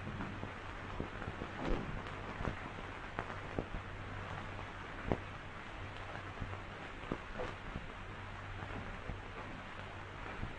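Footsteps tread slowly across a floor.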